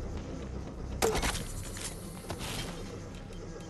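A wooden door clatters and creaks as it is pried apart.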